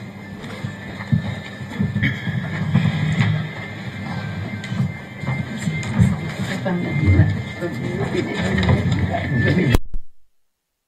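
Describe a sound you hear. A crowd of people murmurs and chatters in a room.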